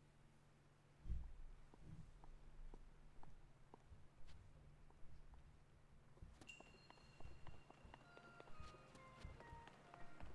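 Footsteps tap on stone as a figure runs.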